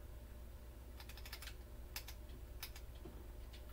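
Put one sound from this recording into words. Video game hit sounds click sharply from a television speaker.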